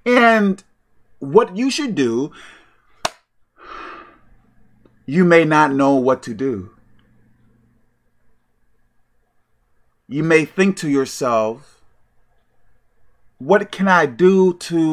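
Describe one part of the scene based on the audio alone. A man speaks emphatically and close to the microphone, in short bursts with pauses.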